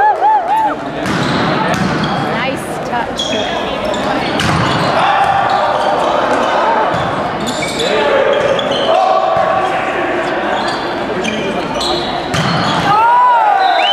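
Young men shout and call out to each other in an echoing hall.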